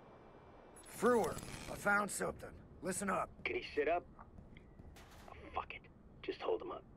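A man speaks calmly over a phone, close by.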